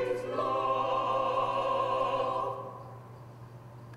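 A choir sings a hymn together and holds a final chord that rings out in a large echoing hall.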